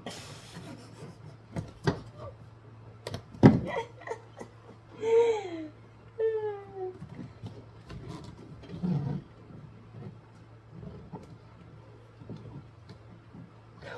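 Plastic parts click and knock as hands work inside a car door.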